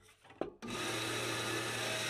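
A band saw blade cuts through wood.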